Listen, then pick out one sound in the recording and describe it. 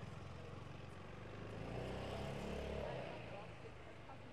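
A motor scooter drives past close by with a low engine hum.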